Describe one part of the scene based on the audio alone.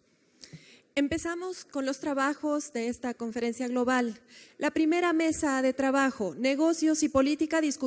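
A woman speaks calmly into a microphone, reading out.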